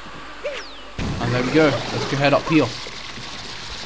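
A giant beanstalk sprouts up with a sudden rushing burst.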